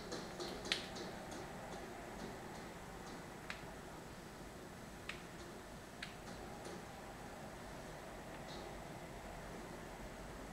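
Video game sound effects chime and clink from a television speaker.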